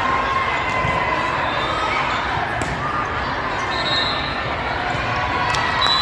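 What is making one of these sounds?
A crowd chatters and cheers in the background.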